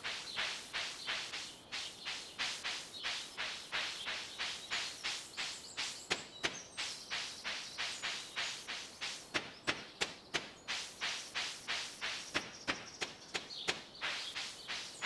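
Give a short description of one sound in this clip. Quick, even footsteps rustle through grass.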